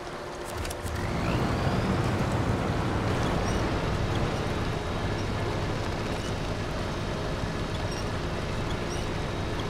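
Water splashes around a truck's wheels.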